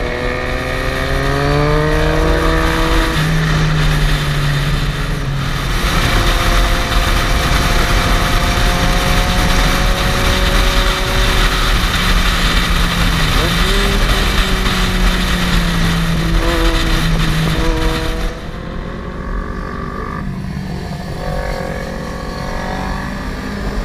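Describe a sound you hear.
A motorcycle engine hums close by, its pitch rising and falling as it shifts gears.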